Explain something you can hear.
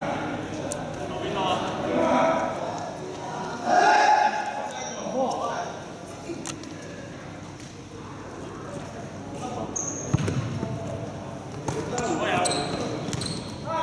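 A basketball bounces with hollow thuds.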